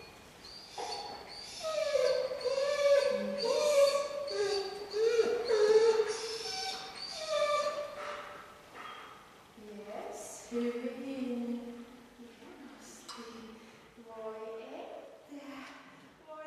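A woman talks to a puppy in a high, excited, sing-song voice close by.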